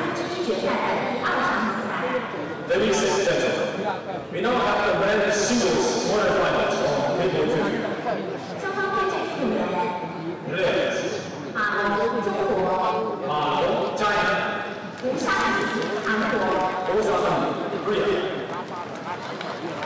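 A middle-aged man speaks urgently and with animation, close by.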